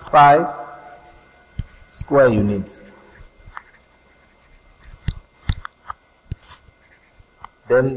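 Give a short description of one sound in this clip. A stylus taps and scratches on a writing tablet.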